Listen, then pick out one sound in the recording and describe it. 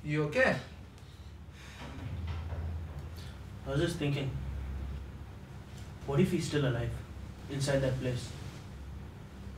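A young man speaks quietly and slowly, close by.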